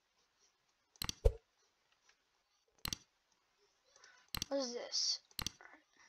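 Short, sharp menu clicks sound a few times.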